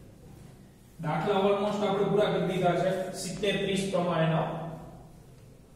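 A man speaks in a lecturing tone, close by.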